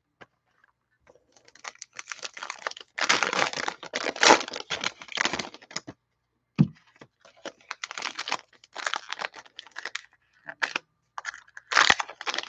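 Foil wrappers crinkle and rustle as hands tear open card packs.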